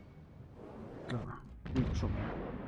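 Large ship guns fire with loud booms.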